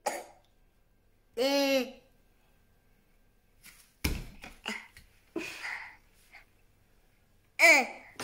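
A small child talks and squeals close by.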